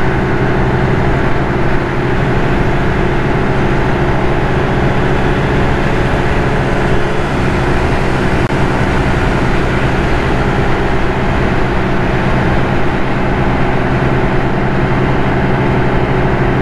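A scooter engine hums steadily at speed.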